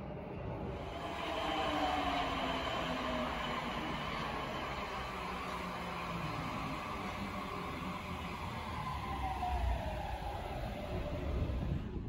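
Train brakes squeal with a slowly falling pitch.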